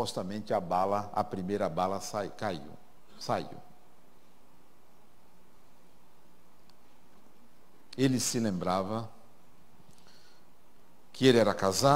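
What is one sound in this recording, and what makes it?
A middle-aged man speaks through a microphone in pauses, calmly addressing an audience.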